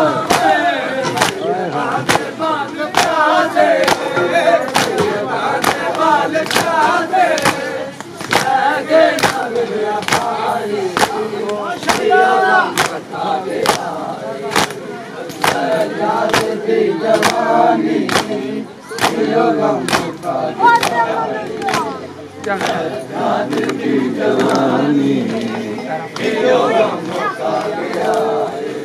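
A crowd of men beat their chests in a steady rhythm, each blow a sharp slap.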